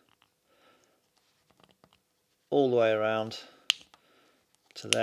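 Small plastic and rubber parts click and rub softly between fingers.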